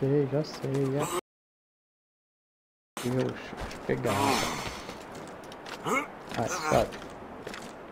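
A middle-aged man talks with animation close to a microphone.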